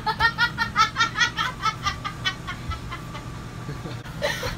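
A boy laughs in quick bursts close by.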